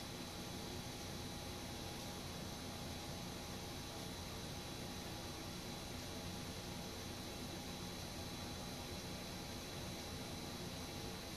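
A ceiling fan whirs steadily overhead.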